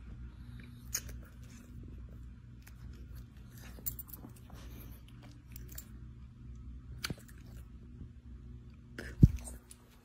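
A small dog licks a woman's face with soft wet smacks.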